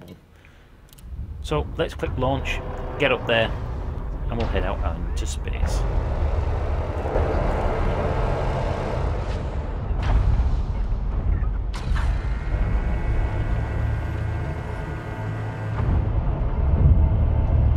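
A spaceship engine rumbles low and steady.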